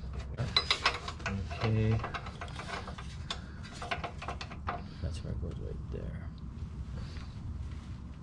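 A ratchet wrench clicks as it turns.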